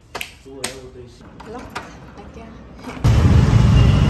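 A key turns and clicks in a door lock.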